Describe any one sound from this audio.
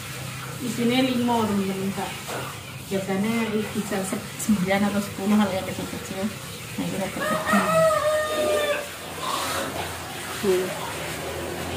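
A middle-aged woman talks with animation close to the microphone.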